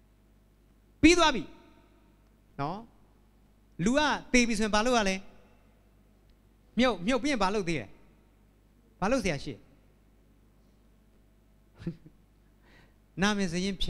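A young man speaks with animation through a microphone, with pauses between phrases.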